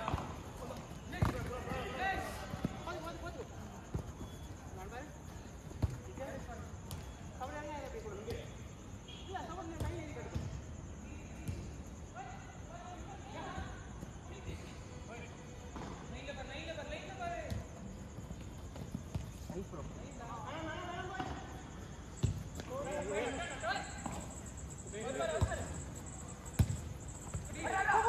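Young men shout and call to each other across an outdoor pitch.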